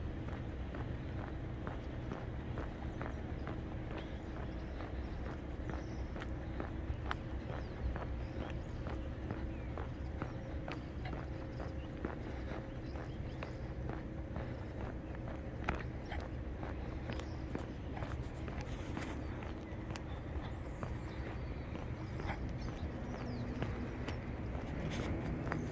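Footsteps tread steadily on wet pavement.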